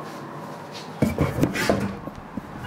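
Hands knock and rub against a microphone close by.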